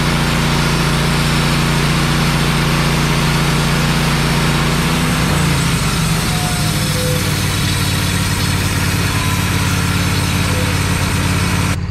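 A band saw blade whines through wood.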